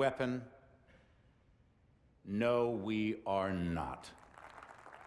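A middle-aged man speaks slowly and gravely into a microphone.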